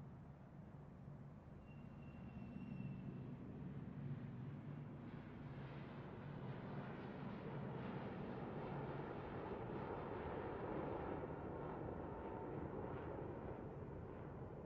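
Jet engines roar steadily as an airliner taxis and then speeds down a runway.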